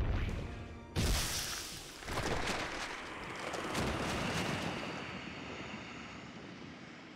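A giant ball bursts open with a puff of smoke.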